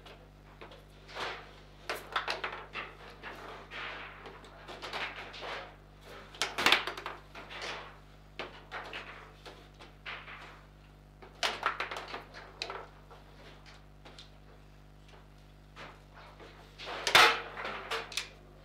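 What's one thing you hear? Table football players knock a hard ball around the table with sharp clacks.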